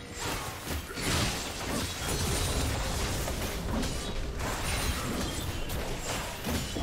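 Game characters clash with rapid hits and blasts.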